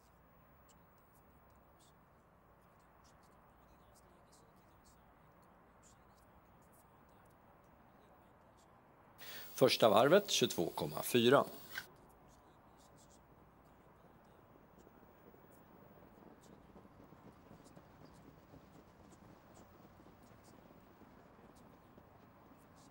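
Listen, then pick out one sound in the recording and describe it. Horses' hooves drum on a dirt track.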